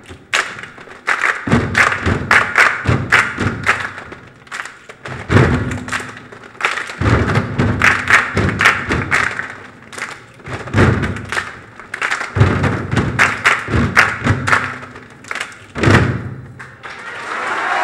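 Children stamp their feet and clap in rhythm on a wooden stage.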